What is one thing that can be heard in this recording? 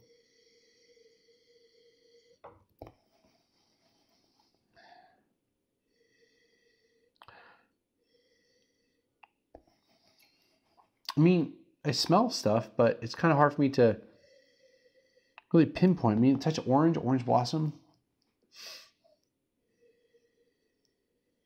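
A man sniffs wine in a glass.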